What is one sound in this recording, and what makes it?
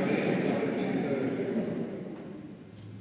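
A man speaks through a microphone in a large echoing hall.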